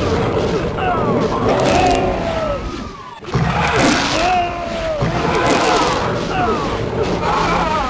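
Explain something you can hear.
A shotgun fires with sharp, heavy blasts.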